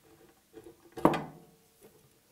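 A metal part knocks sharply against a wooden bench.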